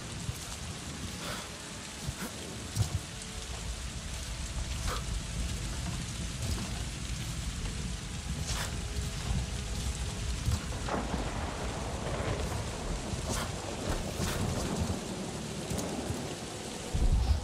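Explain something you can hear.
Footsteps scuff and rustle on moss and bark.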